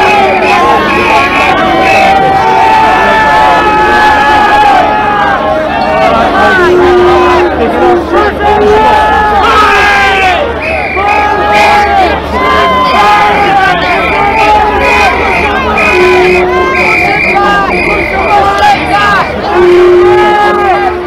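A large crowd of men and women shouts and chants loudly outdoors.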